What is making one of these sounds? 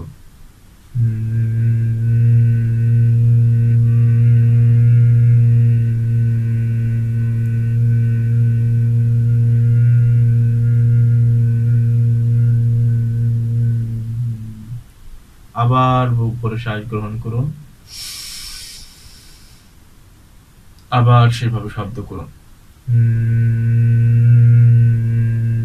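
A young man hums a long, steady low tone.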